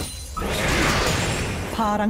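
An explosion booms as a fiery spell hits.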